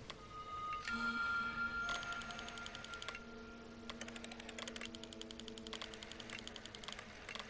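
Soft sparkling chimes and rapid ticking play as a star pattern lights up.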